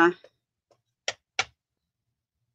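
A rubber stamp taps onto an ink pad.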